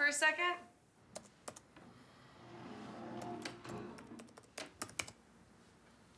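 Fingers tap on a laptop keyboard.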